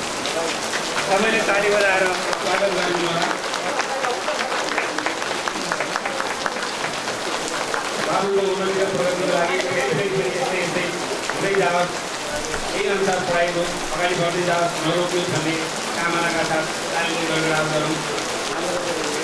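A man speaks calmly over a loudspeaker.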